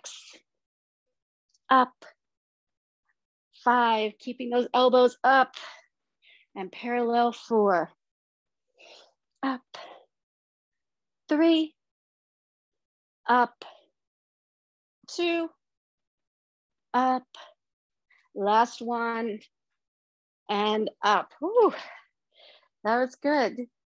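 A woman speaks energetically in short bursts into a nearby microphone.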